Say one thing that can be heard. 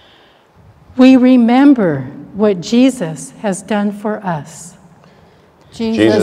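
An elderly person chants in a sung voice through a microphone in a large, echoing room.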